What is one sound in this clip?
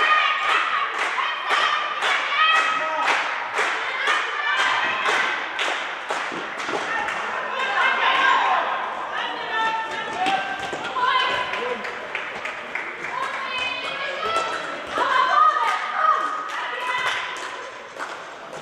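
Sneakers squeak sharply on a hard court floor in an echoing hall.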